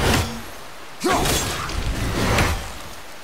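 A magical hum rings and swells.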